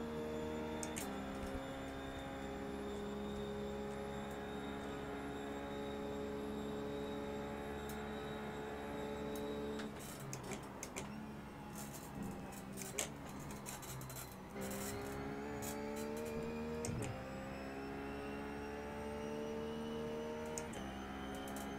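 A race car engine shifts up a gear.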